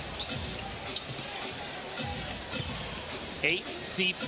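A basketball thumps on the court as a player dribbles.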